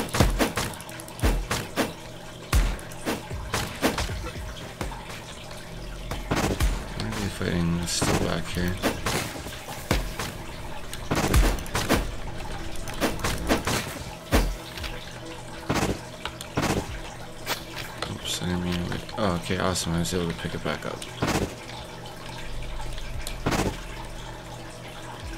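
Sword slashes whoosh and strike again and again.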